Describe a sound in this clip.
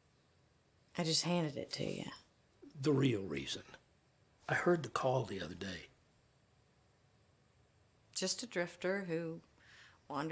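A middle-aged woman speaks in a low, serious voice nearby.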